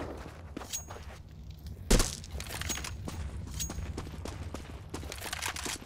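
Quick footsteps run over hard stone ground.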